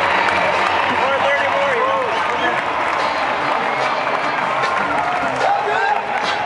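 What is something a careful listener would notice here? Fans whistle and call out in a large open stadium.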